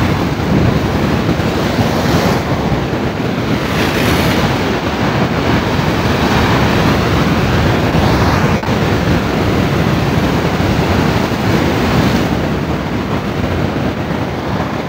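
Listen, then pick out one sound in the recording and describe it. Waves crash steadily against rocks nearby.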